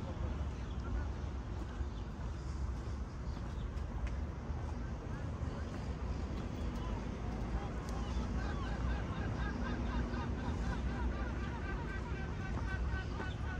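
Footsteps scuff softly on a paved path outdoors.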